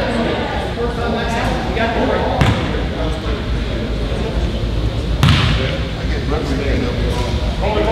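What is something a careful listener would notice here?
Teenage boys talk and call out across an echoing hall.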